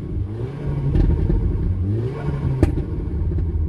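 A car engine revs up and drops back in loud, rising bursts.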